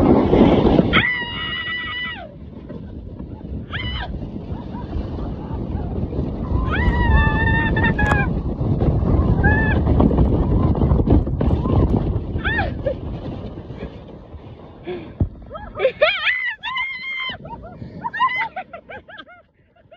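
A young woman squeals and laughs nearby.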